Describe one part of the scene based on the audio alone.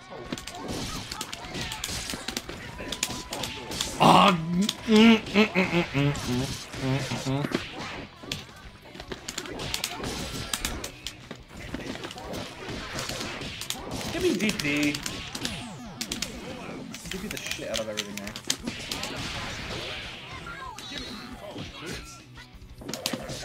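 Punches and kicks thud and smack rapidly in a fighting game.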